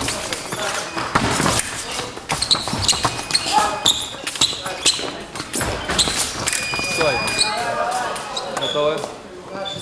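Fencing blades clash and clink sharply.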